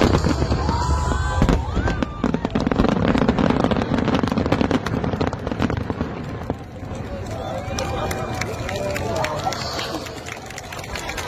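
Fireworks rockets whistle as they shoot up.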